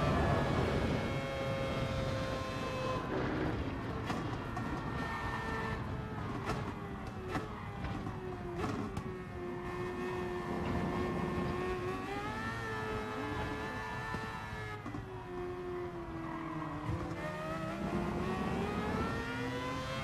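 A racing car engine roars loudly, its pitch dropping as the car slows and climbing again as it speeds up.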